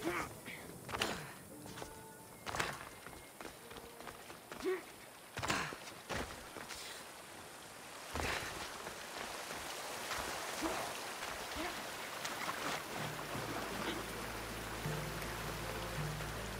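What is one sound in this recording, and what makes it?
Footsteps thud on rocky ground.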